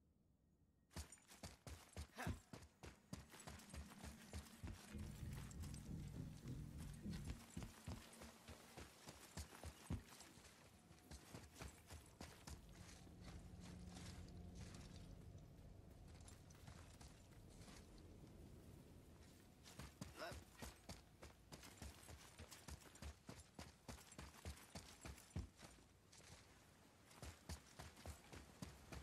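Heavy footsteps run quickly over stone.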